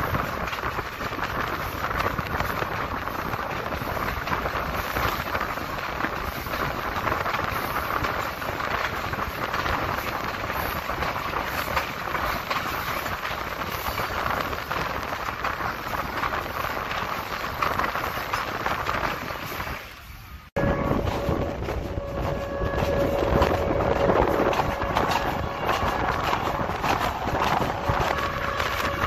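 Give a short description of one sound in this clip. A passenger train rolls along, its wheels clattering over the rail joints.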